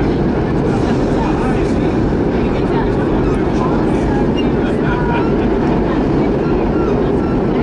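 A vehicle rumbles loudly and steadily as it moves.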